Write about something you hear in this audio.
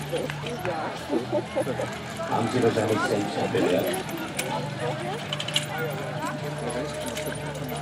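A crowd murmurs and chatters in the distance outdoors.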